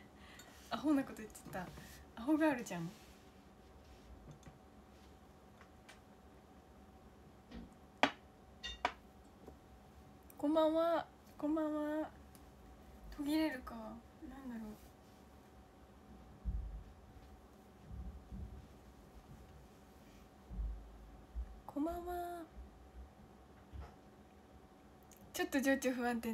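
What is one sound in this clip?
A young woman speaks close to a microphone, with pauses.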